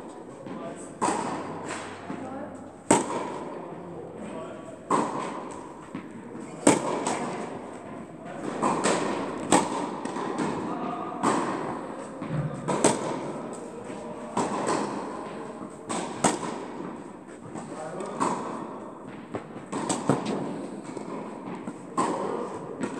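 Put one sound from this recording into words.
Tennis balls are struck with a sharp pop, echoing in a large hall.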